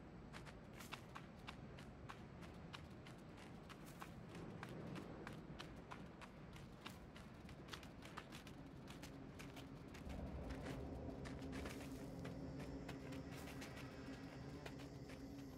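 Light footsteps patter quickly and evenly over the ground.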